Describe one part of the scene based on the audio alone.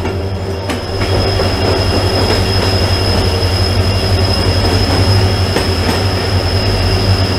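A train's rumble grows louder and echoes inside a tunnel.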